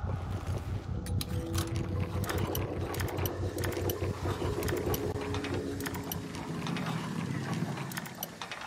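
A lock pick clicks and scrapes inside a metal lock.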